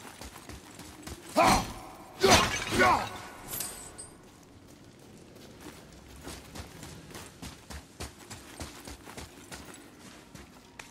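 Heavy footsteps crunch on loose gravel.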